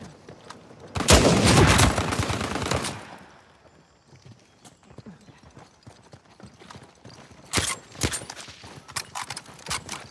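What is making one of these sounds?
Gunfire bursts loudly in rapid shots.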